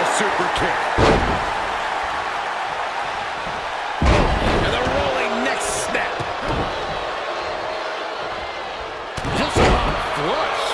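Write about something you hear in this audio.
Bodies slam heavily onto a wrestling ring mat.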